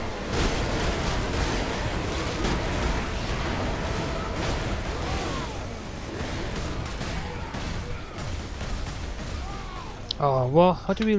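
Guns fire in rapid, heavy bursts.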